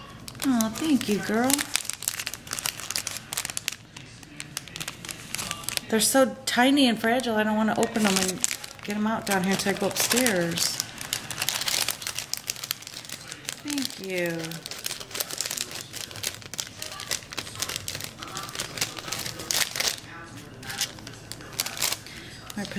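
Plastic wrapping crinkles and rustles as it is handled.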